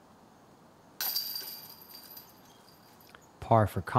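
A disc clanks into metal chains and rattles.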